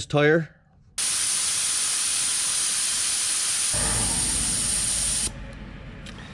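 Air hisses loudly out of a tyre valve.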